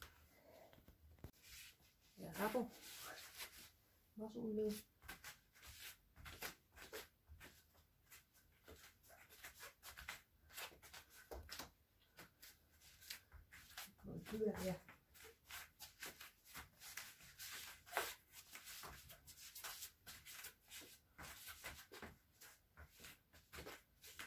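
Hands and feet thump and rustle on an exercise mat.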